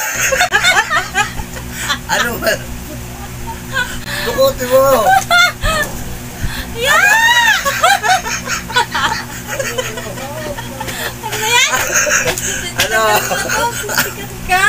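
A young woman laughs loudly and shrieks close by.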